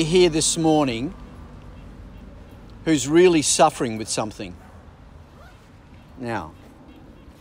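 An elderly man speaks calmly into a microphone outdoors, pausing between phrases.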